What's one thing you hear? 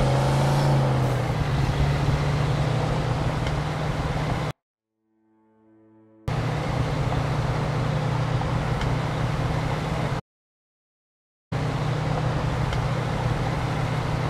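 Tyres rumble over a snowy road.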